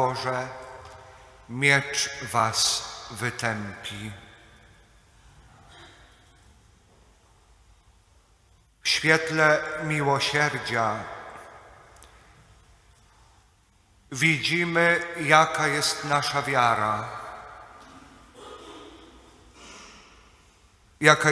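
A middle-aged man speaks calmly into a microphone, with pauses, in an echoing room.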